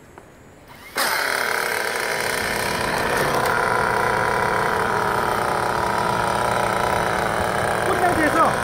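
A small motor whirs loudly and steadily.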